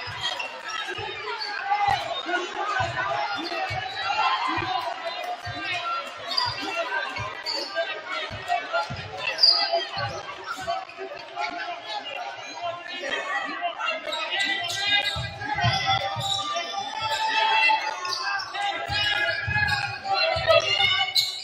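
A basketball bounces on a wooden court with hollow thuds.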